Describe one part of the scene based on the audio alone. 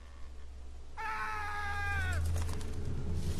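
A crow caws nearby.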